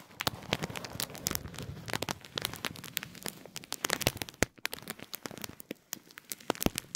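A wooden fork scratches and taps crisply on a paper packet close to a microphone.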